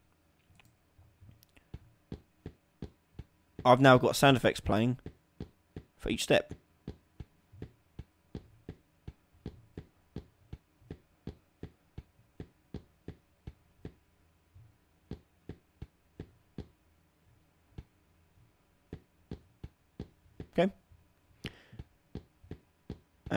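Footsteps tap quickly and evenly as a figure runs.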